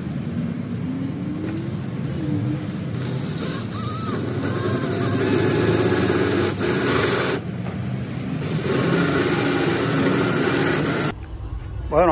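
A power drill whirs in short bursts.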